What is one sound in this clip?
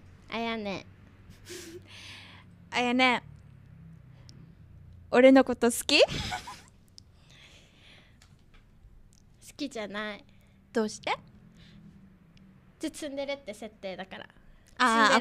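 A second young woman answers and laughs into a close microphone.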